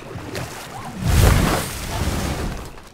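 A wooden boat scrapes up onto a sandy shore with a heavy thud.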